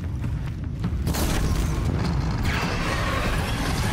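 An arrow whooshes off a bow.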